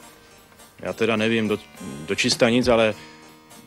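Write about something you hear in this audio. A man reads aloud quietly nearby.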